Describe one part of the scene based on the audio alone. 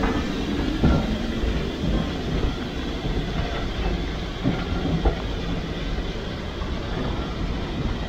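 Train wheels clank and rumble over rail joints as the train pulls away.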